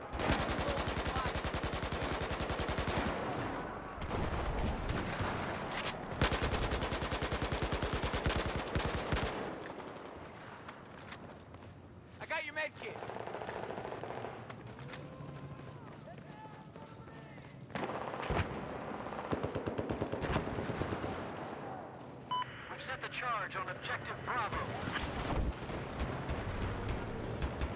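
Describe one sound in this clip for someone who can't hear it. An automatic rifle fires rapid bursts at close range.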